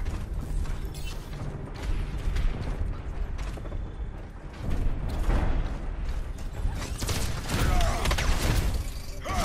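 A gun fires rapid electric bursts.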